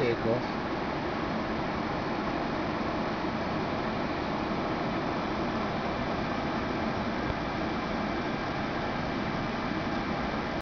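A jet engine roars steadily, heard from inside an aircraft cabin.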